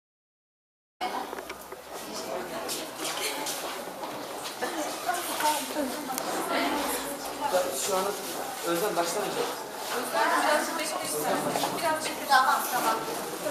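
A crowd of people chatters in a room.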